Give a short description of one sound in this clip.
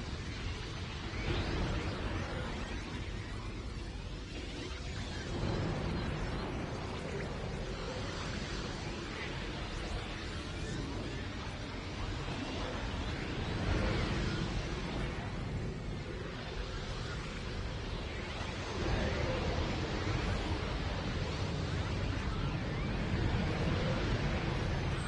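Game music with whooshing effects plays throughout.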